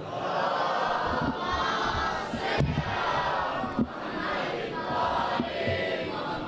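A young man chants loudly and with emotion into a microphone, heard through loudspeakers in an echoing hall.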